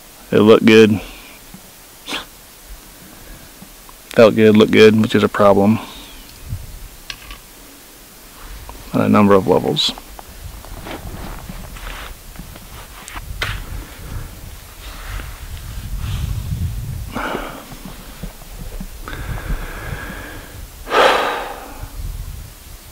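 A man speaks calmly and close by, in bursts with pauses.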